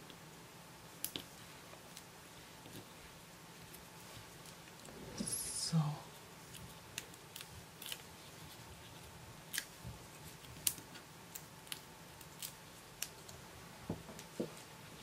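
Small paper pieces tap softly onto a table.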